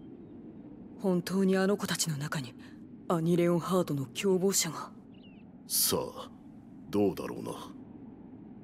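A young man speaks calmly and quietly.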